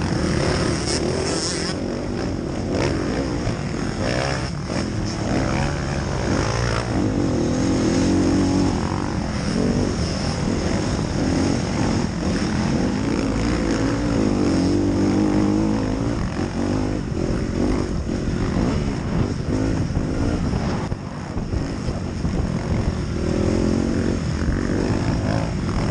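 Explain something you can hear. A dirt bike engine revs loudly up close, rising and falling.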